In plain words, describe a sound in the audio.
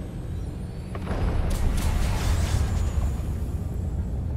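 A large explosion booms with a deep rumble.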